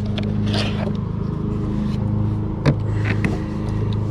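A fish flaps and thumps against a plastic kayak hull.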